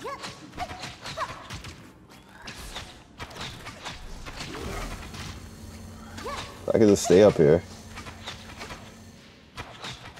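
Blades clash and strike in quick hits.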